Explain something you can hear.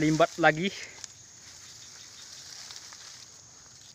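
Tall grass rustles and swishes as a man pushes through it.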